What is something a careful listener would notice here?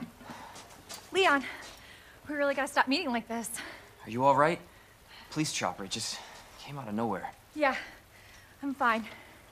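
A young woman talks quietly.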